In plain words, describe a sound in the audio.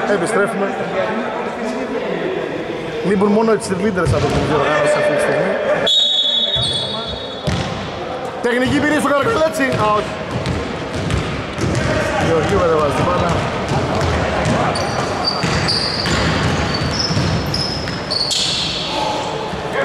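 Men shout and call out across the hall.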